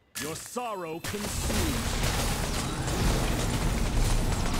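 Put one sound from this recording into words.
A magic spell whooshes and crackles loudly.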